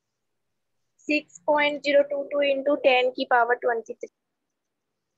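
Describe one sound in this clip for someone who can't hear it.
A young woman speaks clearly into a clip-on microphone.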